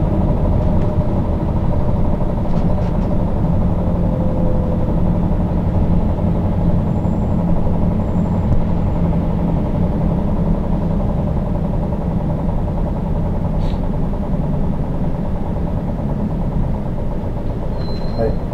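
Traffic rumbles past on a busy street.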